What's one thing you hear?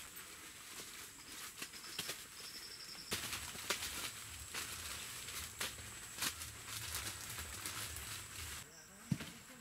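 Newspaper crinkles and rustles as fruit is wrapped.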